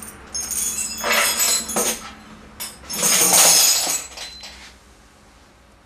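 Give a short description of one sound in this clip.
A tambourine jingles as it is shaken.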